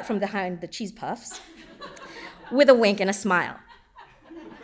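A woman speaks with animation into a microphone in a large hall.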